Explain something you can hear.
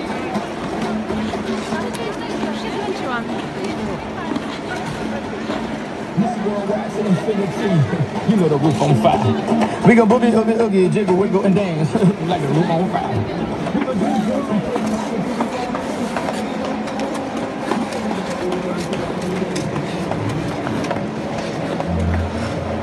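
Ice skates scrape and swish on ice.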